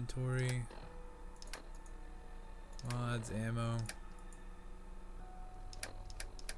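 A handheld device clicks and beeps as its menus change.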